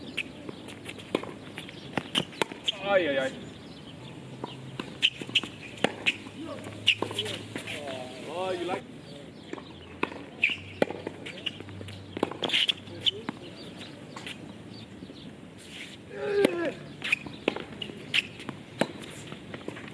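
Tennis rackets strike a ball back and forth outdoors.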